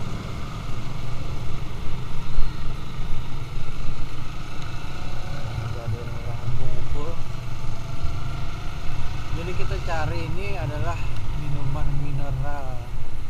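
Wind rushes past a moving rider.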